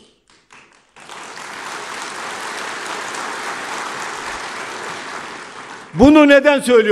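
A seated audience applauds.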